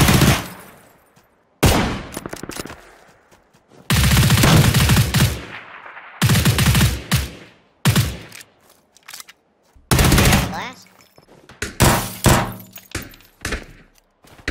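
Rifle shots fire in loud rapid bursts with sharp echoes.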